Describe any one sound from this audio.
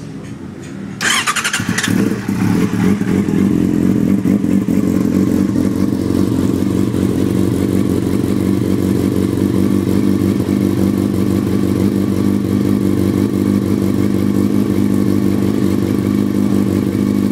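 A motorcycle engine suddenly revs up and stays louder.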